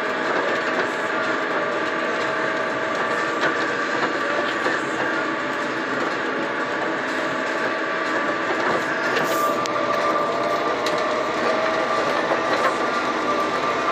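A bus engine hums steadily while driving along a road.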